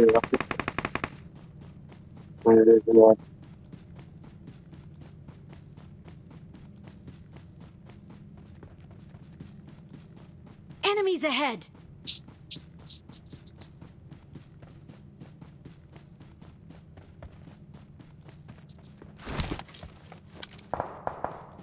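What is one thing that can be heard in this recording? Footsteps thud quickly and steadily over grass.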